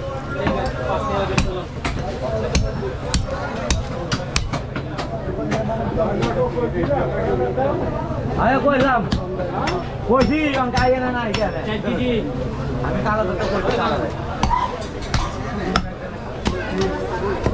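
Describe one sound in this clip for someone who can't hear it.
A cleaver chops through meat and bone onto a wooden block with sharp knocks.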